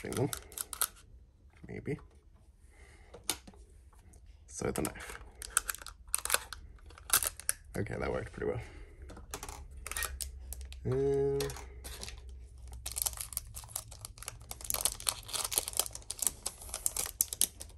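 Plastic packaging crinkles and rustles under fingers.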